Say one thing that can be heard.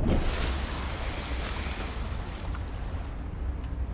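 Waves slosh and hiss at the surface.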